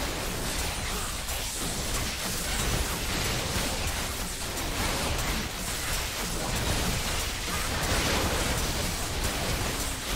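Spell effects whoosh and crackle during a fantasy battle.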